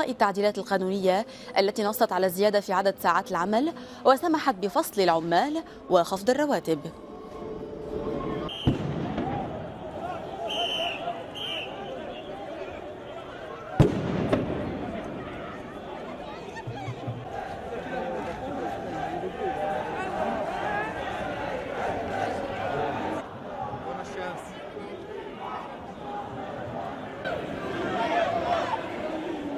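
A large crowd of protesters chants and shouts outdoors.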